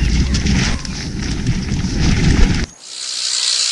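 Bicycle tyres rumble over rough ground.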